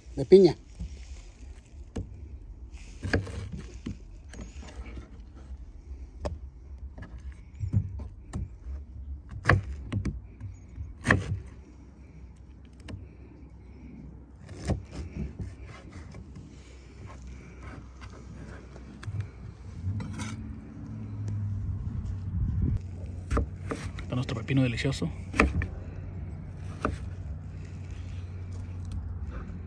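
A knife taps and thuds on a plastic cutting board.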